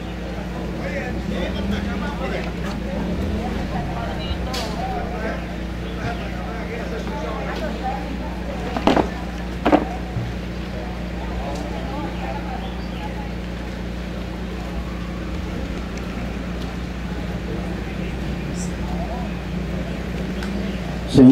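An older man speaks calmly through a microphone and loudspeakers outdoors.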